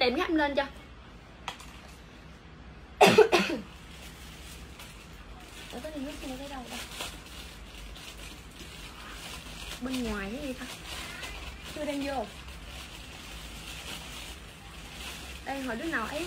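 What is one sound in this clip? Clothes rustle as a young woman handles them.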